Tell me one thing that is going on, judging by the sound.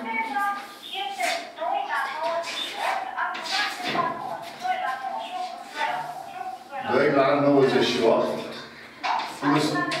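An elderly man speaks steadily, as if lecturing, close by.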